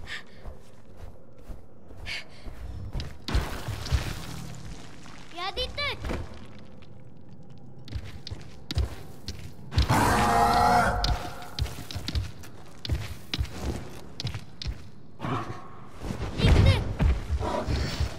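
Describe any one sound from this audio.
Feathers rustle and thump softly.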